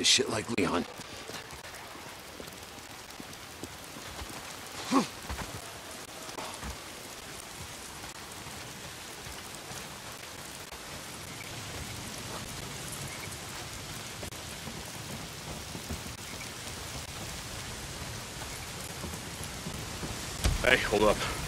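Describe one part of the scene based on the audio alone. Footsteps run over ground and leaves.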